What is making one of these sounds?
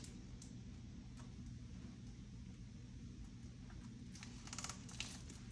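Small plastic items click and rustle softly as they are handled.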